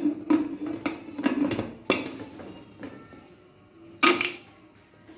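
A metal pressure cooker lid clanks and clicks as it is handled.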